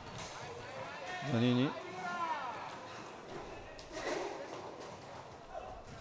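Roller skates rumble and scrape across a hard floor in a large echoing hall.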